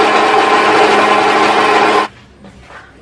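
A blender whirs loudly.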